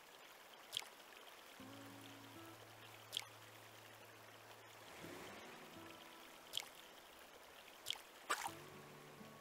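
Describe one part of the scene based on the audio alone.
A fishing float plops into water.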